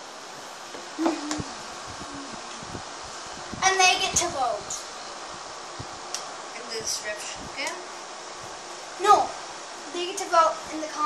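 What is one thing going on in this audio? A young boy talks nearby in short bursts.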